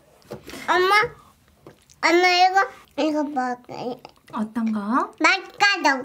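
A small child speaks in a high voice.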